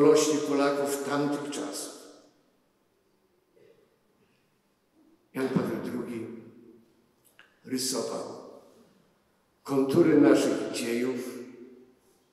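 An elderly man speaks slowly and solemnly into a microphone, with pauses, in a large echoing hall.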